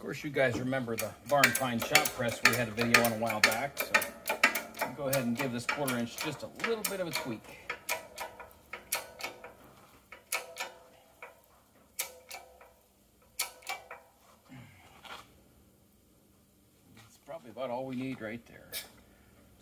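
Metal parts of a press clink and click under a hand.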